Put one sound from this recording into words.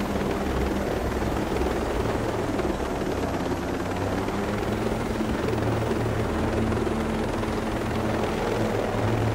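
A helicopter engine roars and whines.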